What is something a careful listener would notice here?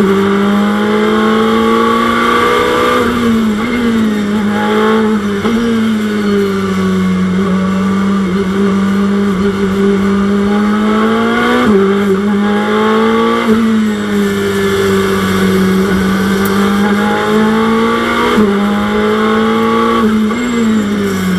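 A racing car engine roars loudly, its pitch climbing and then dropping sharply with each gear change.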